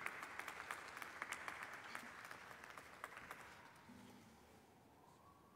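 An audience applauds, then fades out.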